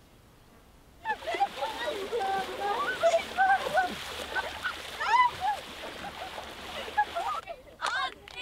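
Young people shout and laugh while bathing in a lake.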